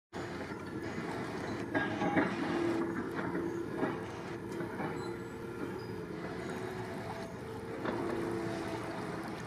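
A paddle dips and splashes softly in calm water.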